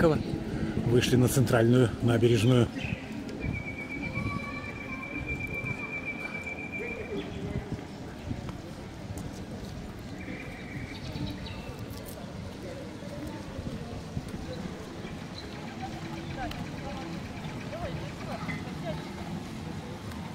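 Men and women talk quietly in the distance outdoors.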